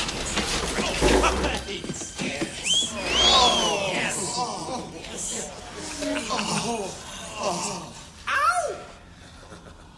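A crowd cheers and shouts in a large echoing hall.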